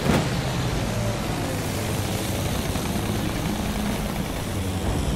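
Wind rushes past a plane in flight.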